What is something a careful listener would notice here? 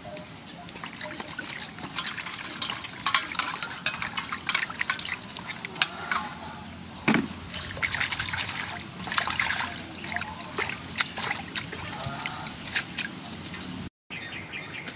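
Water splashes and sloshes as hands wash vegetables in a basin.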